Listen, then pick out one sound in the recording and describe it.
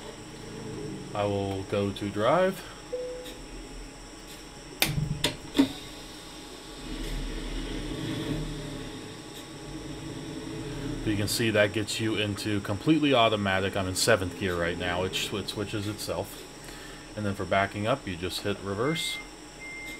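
A button clicks.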